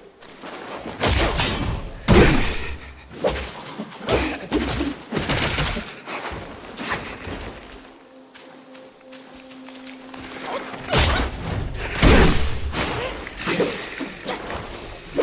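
Heavy blows thud against a large creature.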